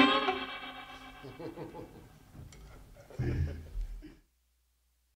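A band plays along with the singing.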